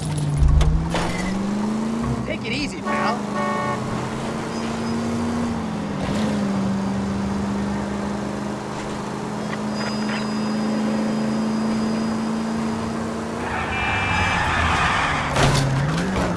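A car engine hums steadily as the car drives along, rising and falling in pitch with the speed.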